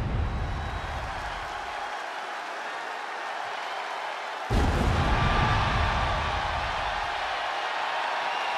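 Pyrotechnic flames burst with deep booming whooshes.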